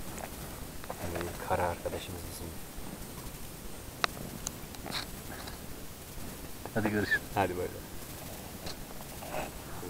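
A young man talks close by in a cheerful, animated voice.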